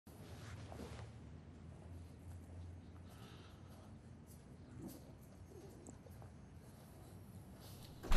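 Footsteps walk across a hard floor indoors.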